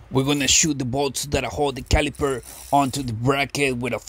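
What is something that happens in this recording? A metal brake caliper clinks against the disc.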